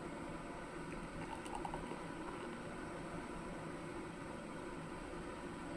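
Beer pours from a bottle into a glass, gurgling and fizzing.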